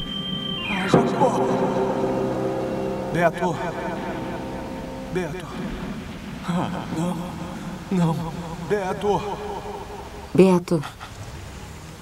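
A young man speaks slowly and softly, close by, with long pauses.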